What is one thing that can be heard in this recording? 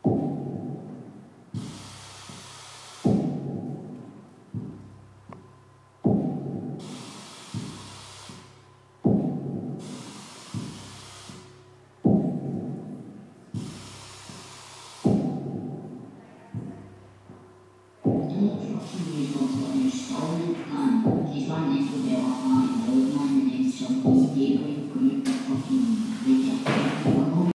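Electronic music with deep thumping pulses plays through loudspeakers.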